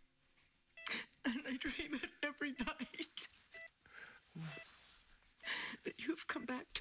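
An elderly woman speaks softly and emotionally up close.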